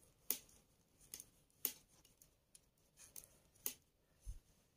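Metal knitting needles click and tick softly against each other.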